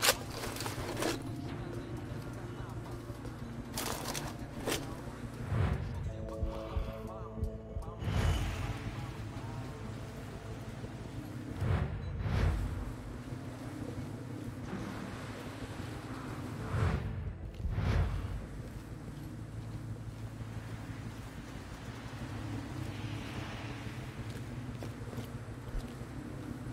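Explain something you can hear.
Footsteps tread on hard concrete.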